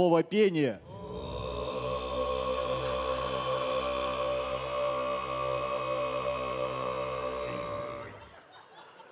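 A man performs throat singing, a low steady drone with whistling overtones.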